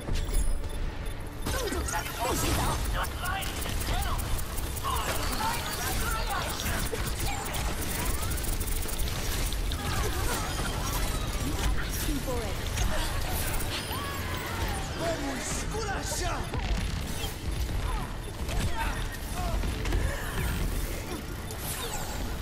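A blaster fires rapid bursts of energy shots.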